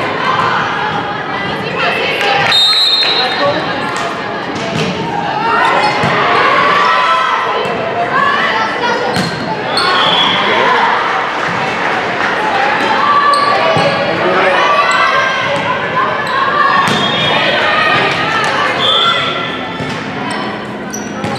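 Teenage girls call out to each other in an echoing gym.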